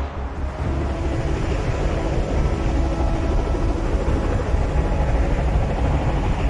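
Large rotors whir with a steady hum.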